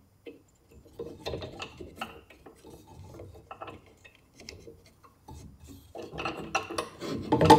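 A small wooden block rubs and taps as hands turn it over.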